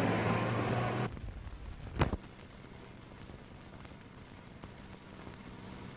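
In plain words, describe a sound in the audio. A car engine rumbles as a car drives along a dirt road.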